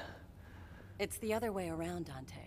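A young woman speaks coolly, close by.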